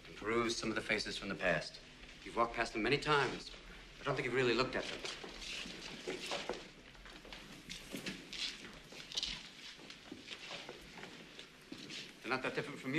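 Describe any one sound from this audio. A man speaks with animation nearby in an echoing room.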